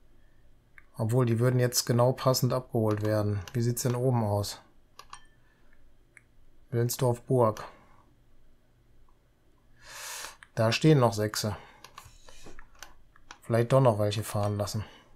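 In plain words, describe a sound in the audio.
A middle-aged man talks calmly and closely into a microphone.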